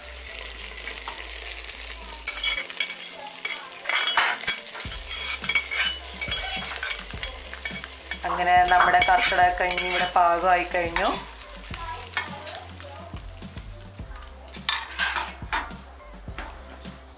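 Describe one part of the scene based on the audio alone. Fried onions sizzle and crackle in hot oil.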